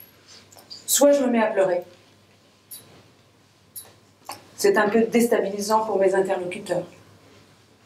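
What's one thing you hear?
A woman reads aloud calmly into a microphone.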